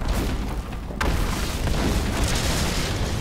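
A magic beam crackles and hums.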